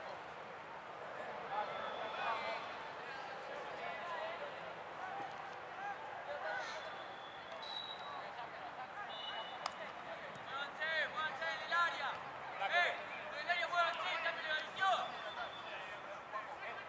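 Young men call out and shout across an open outdoor field.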